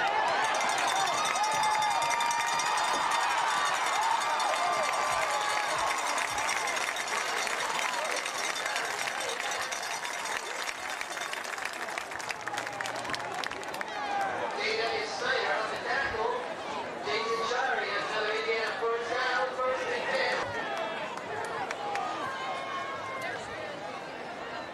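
A large crowd of spectators cheers and shouts outdoors.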